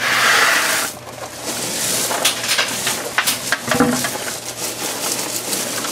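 Hands scrape and rake through loose gravel.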